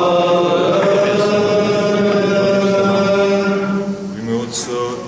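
A man sings a long chant in a full, steady voice, echoing in a large hall.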